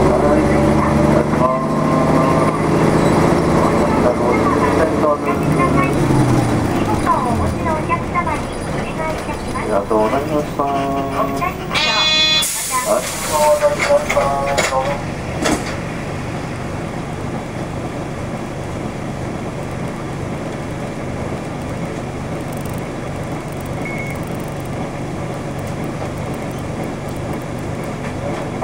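A vehicle's engine rumbles as it drives along a road.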